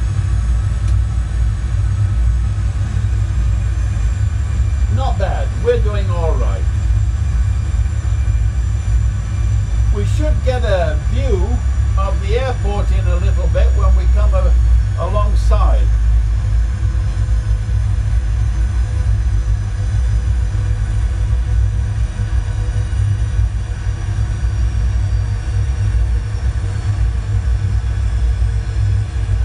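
A low steady engine drone hums throughout.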